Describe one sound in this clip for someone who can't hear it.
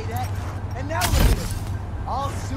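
A car crashes down with a loud metallic bang.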